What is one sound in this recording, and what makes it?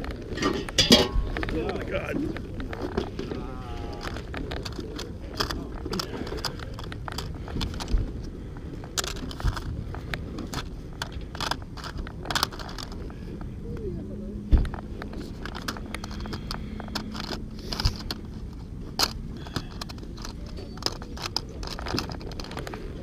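Plastic game cartridges click and rattle as a hand handles them.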